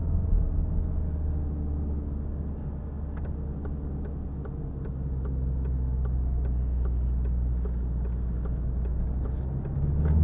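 A gear lever clicks as it is shifted.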